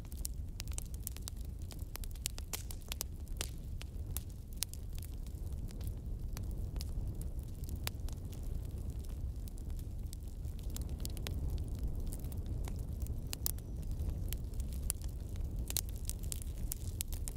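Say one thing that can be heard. Flames roar with a low, steady rumble.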